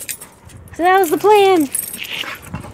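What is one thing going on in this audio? A dog lets out two loud, high whines close by.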